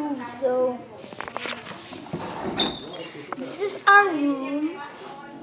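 A young boy talks close to a phone microphone.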